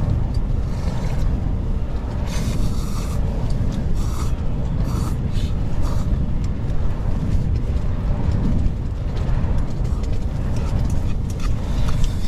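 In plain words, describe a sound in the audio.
A man slurps noodles and soup up close.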